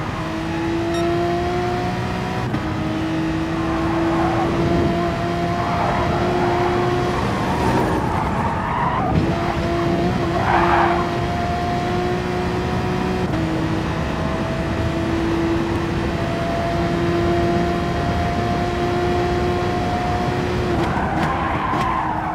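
A racing car engine roars at high speed, its pitch dropping briefly with each gear change.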